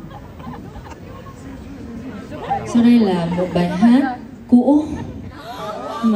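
A young woman speaks into a microphone, heard over loudspeakers in a large hall.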